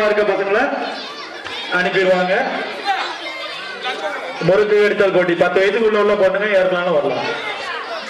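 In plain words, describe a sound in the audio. Music with singing plays loudly through a loudspeaker.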